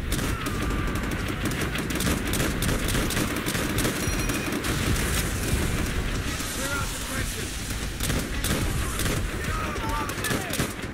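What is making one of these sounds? Rapid gunfire crackles all around in a battle.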